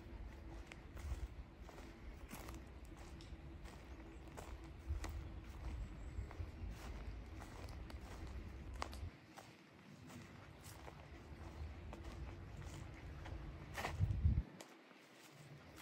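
Leaves rustle softly in the breeze.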